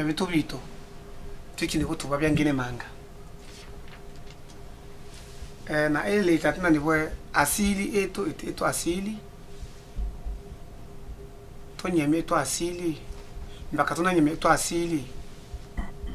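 A man speaks calmly and closely, in short phrases with pauses.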